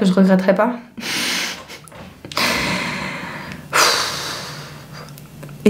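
A young woman sighs out heavily.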